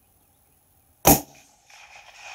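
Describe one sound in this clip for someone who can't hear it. A rifle fires a single loud shot that echoes outdoors.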